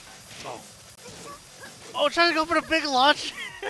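Blows land with sharp thuds in a fighting game.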